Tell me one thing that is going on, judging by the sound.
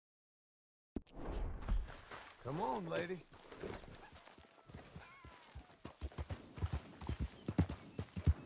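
A horse gallops with rapid hoofbeats.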